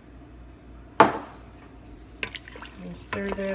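A wooden spoon stirs and scrapes in a metal pot.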